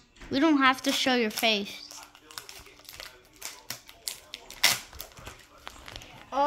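A foil wrapper crinkles and tears as a child opens it.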